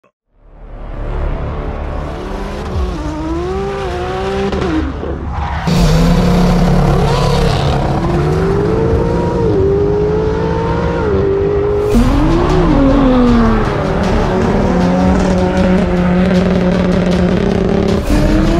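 A car engine revs loudly and roars away.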